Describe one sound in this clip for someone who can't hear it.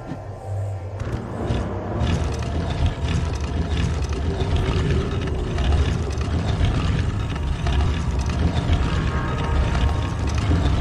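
A heavy stone block grinds and scrapes as it is pushed across a stone floor.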